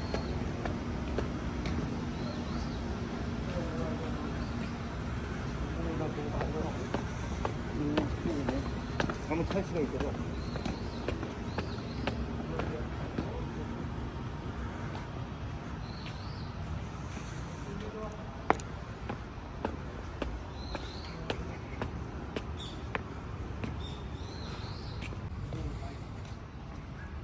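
Footsteps tap on stone steps and paving.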